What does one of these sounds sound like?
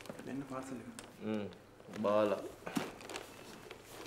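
A paper envelope rustles as it is opened.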